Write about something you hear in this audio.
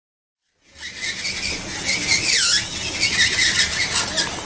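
A nail file scrapes lightly against fingernails.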